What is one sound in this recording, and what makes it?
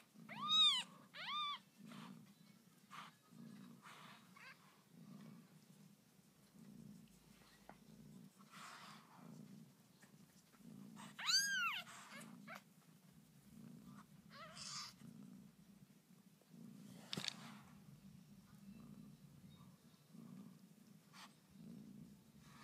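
Puppies suckle and snuffle softly up close.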